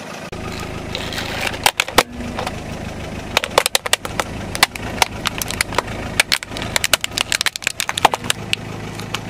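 A plastic toy truck snaps and cracks under a rolling tyre.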